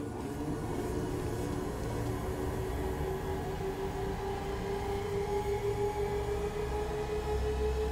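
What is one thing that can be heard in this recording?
A spacecraft engine hums steadily with a low rumble.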